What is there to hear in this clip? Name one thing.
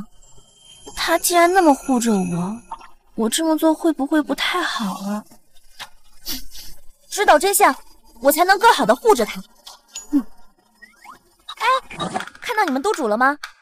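A young woman speaks softly and hesitantly, close by.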